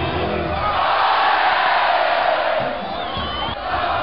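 Young women shout and cheer close by.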